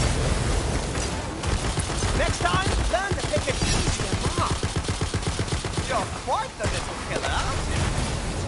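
Fiery explosions boom.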